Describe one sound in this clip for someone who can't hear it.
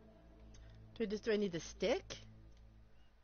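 A woman speaks briefly and casually, close to a microphone.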